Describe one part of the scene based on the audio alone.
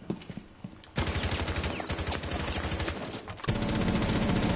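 Rapid gunfire rattles in a long burst.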